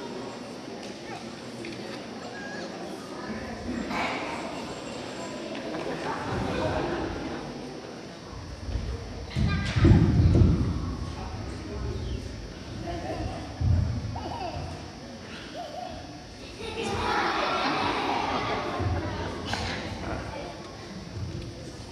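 A woman speaks animatedly into a microphone over loudspeakers.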